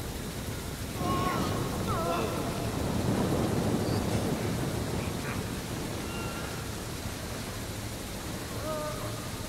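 Water splashes and sloshes as something heavy wades through it.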